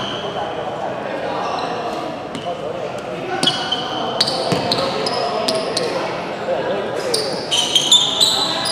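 Young men talk and call out in the distance.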